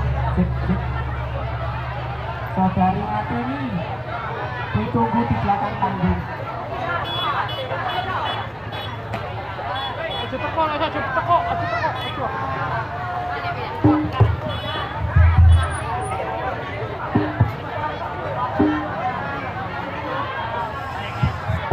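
A crowd of young people talks and shouts excitedly close by.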